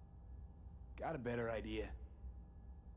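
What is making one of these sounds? A young man speaks calmly close to a microphone.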